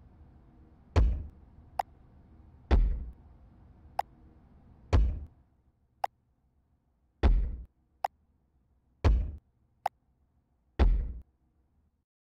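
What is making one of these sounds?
Deep, heavy thuds boom at regular intervals.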